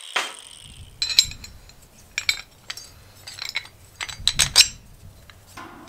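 Metal parts clink and knock together in hands.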